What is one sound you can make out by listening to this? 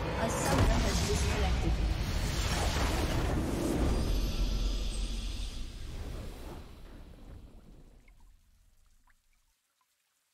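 A triumphant victory fanfare swells and fades out.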